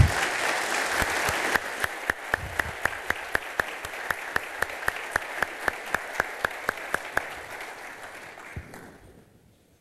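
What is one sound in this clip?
An audience applauds in a large hall, then claps in a steady rhythm before fading out.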